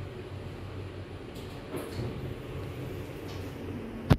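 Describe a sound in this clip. Lift doors slide open.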